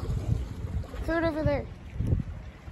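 A seagull cries briefly.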